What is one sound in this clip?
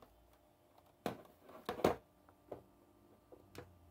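Buttons on a game controller click and rattle.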